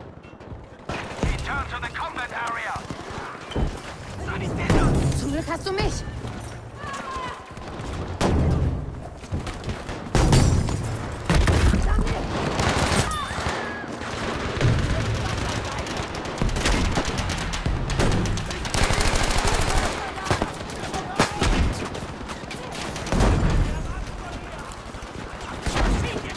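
Gunfire crackles in rapid bursts, echoing in a closed space.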